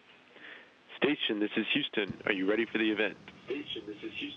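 A man speaks calmly over a radio link.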